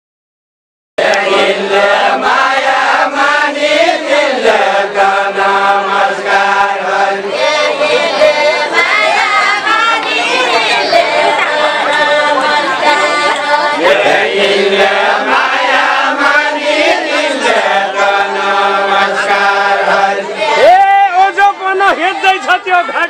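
A man sings a folk song loudly outdoors.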